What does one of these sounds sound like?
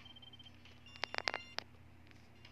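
Bright chimes ring out in quick succession.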